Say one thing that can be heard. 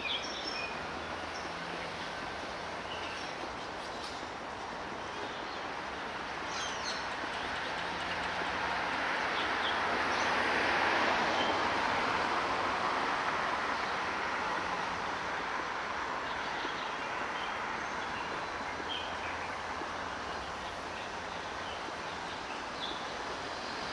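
Steady city traffic hums in the background outdoors.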